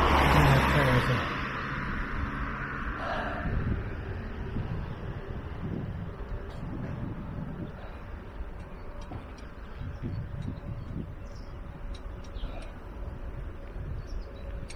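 Wind blows across outdoors.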